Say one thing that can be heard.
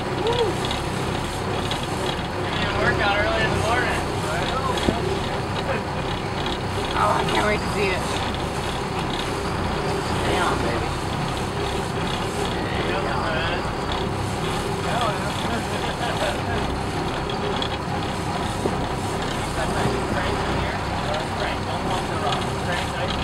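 Water splashes against the boat.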